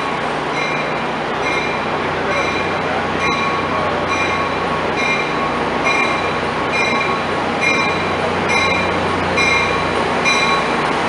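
A passenger train rumbles steadily past close by.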